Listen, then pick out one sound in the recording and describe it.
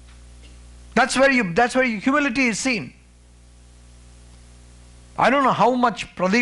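A man speaks with animation into a microphone, heard through a loudspeaker in a hall.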